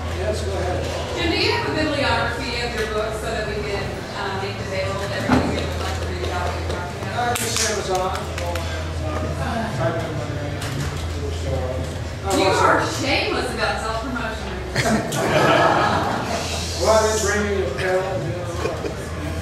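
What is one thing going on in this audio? An older man speaks to a room, slightly distant and echoing.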